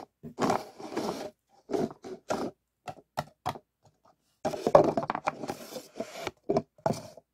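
Paper cups tap and scrape against each other.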